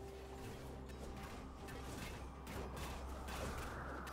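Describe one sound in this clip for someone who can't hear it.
Weapons clash and magic blasts crackle in a brief fight.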